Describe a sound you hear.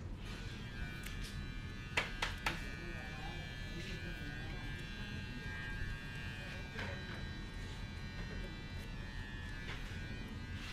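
Scissors snip through hair with short, crisp clicks.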